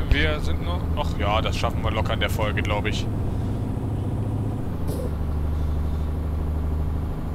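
A diesel truck engine drones while cruising on a highway.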